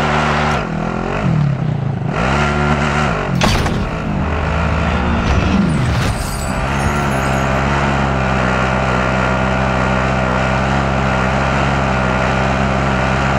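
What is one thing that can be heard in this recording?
A truck engine hums steadily as the vehicle drives along.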